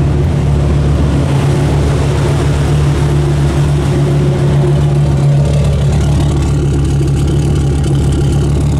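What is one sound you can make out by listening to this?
A truck engine idles loudly with a deep, steady rumble.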